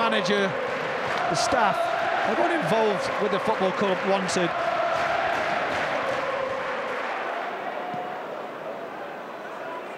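A large stadium crowd roars and cheers, slowly fading.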